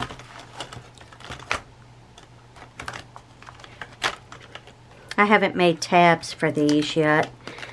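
A plastic binder pocket crinkles as it is handled.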